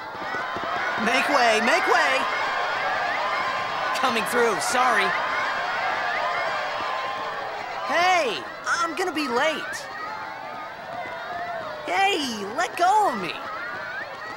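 A young man shouts loudly nearby.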